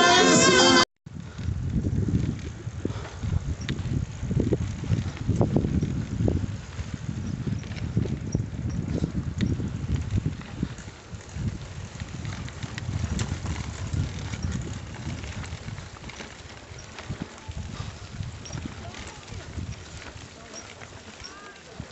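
Bicycle tyres roll and crunch over a dirt road.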